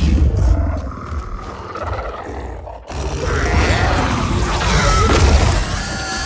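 A beast snarls and growls.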